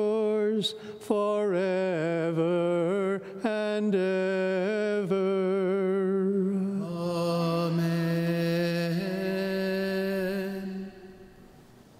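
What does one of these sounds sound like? An elderly man chants in a sustained, singing voice through a microphone, echoing in a large hall.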